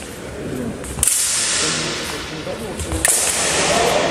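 Swords clash with sharp metallic clanks in a large echoing hall.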